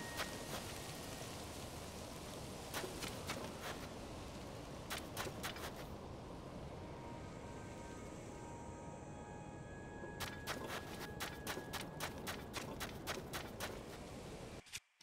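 Footsteps crunch on sand.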